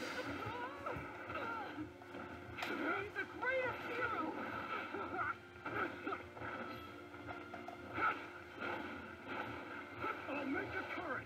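Punches and energy blasts crash and whoosh from a fighting game.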